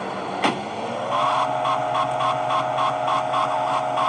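A car engine starts up and runs with a steady hum.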